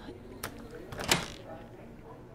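A door opens with a click.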